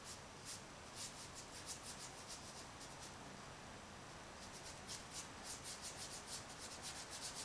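A tool scrapes across paper in quick, rhythmic strokes.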